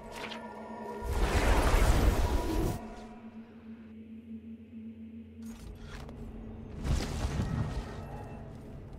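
A deep magical whoosh swells and then fades.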